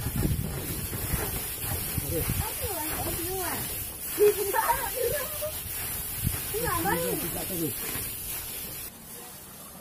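A large animal munches and tears at grass close by.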